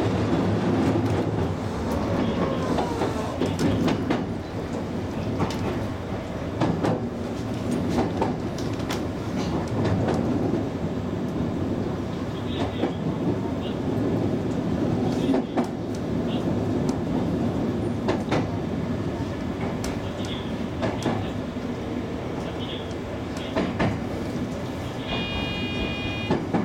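A train rumbles steadily.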